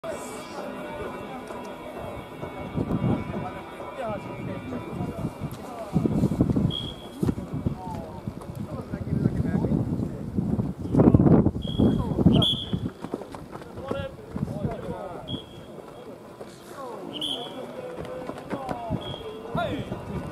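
Several men talk and call out outdoors.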